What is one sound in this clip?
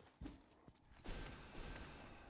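A game sword slashes with a sharp swish.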